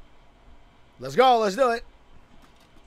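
A young man shouts with urgency.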